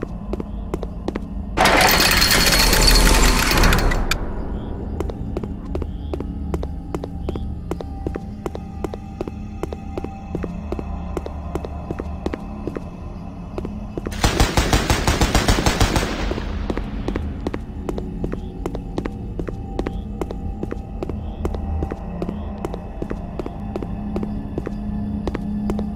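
Footsteps crunch steadily across grass.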